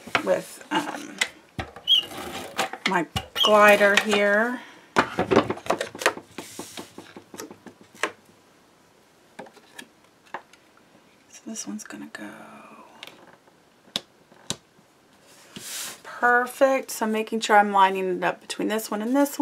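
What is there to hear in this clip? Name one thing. Paper rustles and slides on a table.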